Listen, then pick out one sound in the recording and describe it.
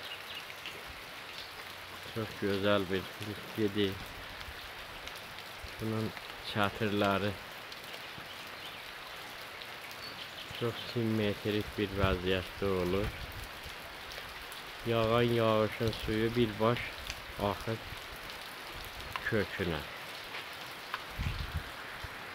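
Rain patters steadily on leaves outdoors.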